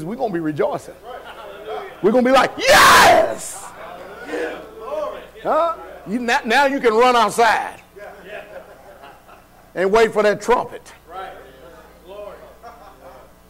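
A man preaches loudly and passionately into a microphone in a large echoing hall.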